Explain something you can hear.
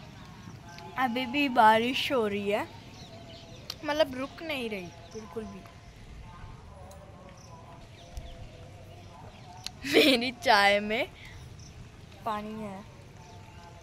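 A girl sings in a high voice close by.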